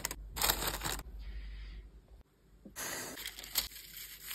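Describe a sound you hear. Paper crinkles and rustles as a package is handled.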